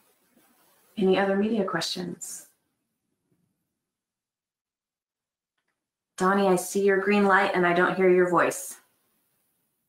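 A woman speaks calmly over an online call, in two short bursts.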